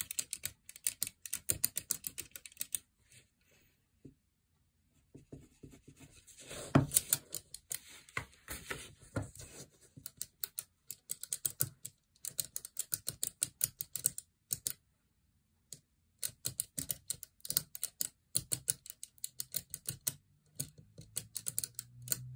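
Fingers flick the wooden beads of a soroban abacus in rapid clicking bursts.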